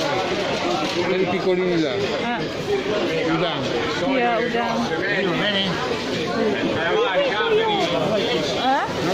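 Many men and women chatter and call out loudly all around.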